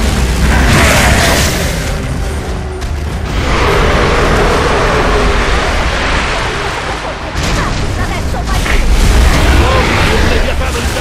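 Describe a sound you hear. Heavy gunfire rattles loudly and steadily.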